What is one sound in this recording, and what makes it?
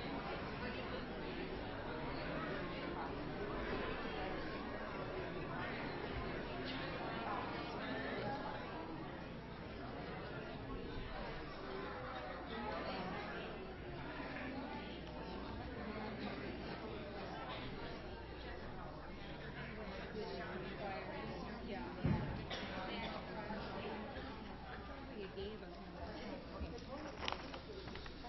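A crowd of men and women chat and greet each other in a room that echoes a little.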